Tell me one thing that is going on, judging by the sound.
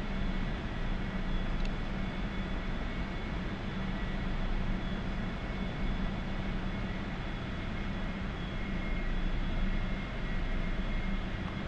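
A jet engine roars steadily from inside the cockpit.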